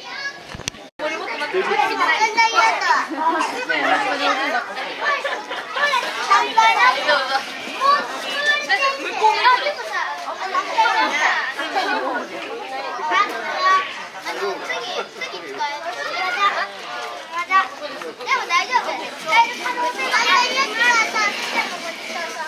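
Small children chatter and squeal excitedly close by.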